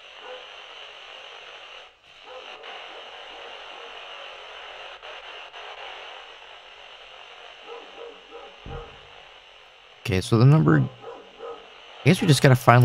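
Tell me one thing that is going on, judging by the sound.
A lighter flame hisses softly.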